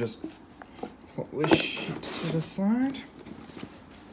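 A cardboard box is set down with a soft knock.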